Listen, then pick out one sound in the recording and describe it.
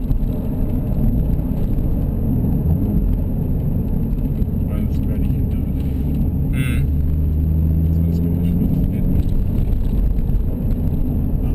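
A car engine hums steadily, heard from inside the cabin.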